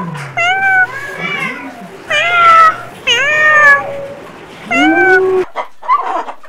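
Kittens meow in high, rising cries.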